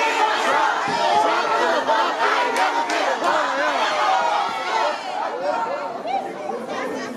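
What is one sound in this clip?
A crowd of young women cheers and screams loudly in an echoing room.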